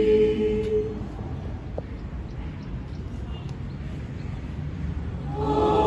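A group of women's voices sings a held note together.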